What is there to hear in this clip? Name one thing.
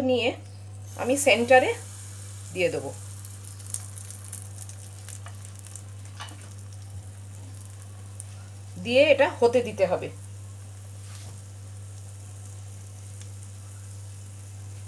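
Pancake batter sizzles in hot oil in a pan.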